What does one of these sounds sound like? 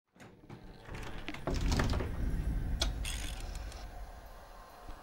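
A soft whoosh swells and fades.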